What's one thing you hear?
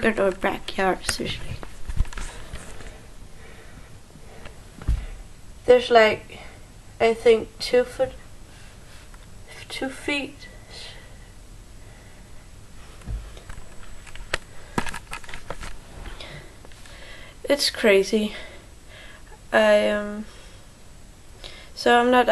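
A young woman talks close by, in short bursts.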